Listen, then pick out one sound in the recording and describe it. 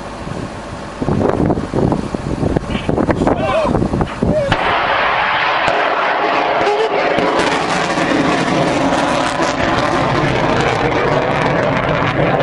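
A rocket launches with a loud, steady roar.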